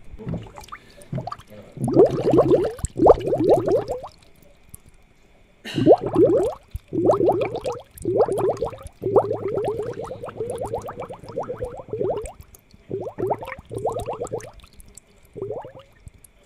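Air bubbles gurgle steadily in a fish tank.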